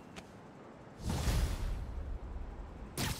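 A loud whoosh rushes past.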